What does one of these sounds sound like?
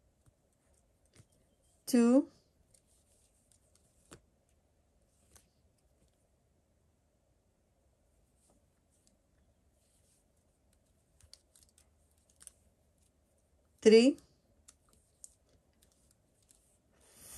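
A crochet hook softly clicks and rustles through yarn.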